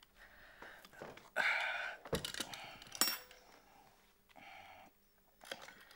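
A telephone handset clatters and clicks as it is picked up.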